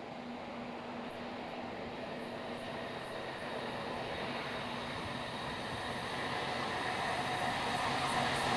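Train wheels clatter and rattle on the rails as the train draws near.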